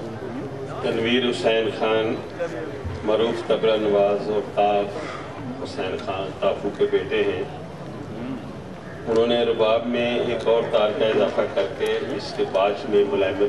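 An elderly man speaks slowly into a microphone, heard through loudspeakers in a large hall.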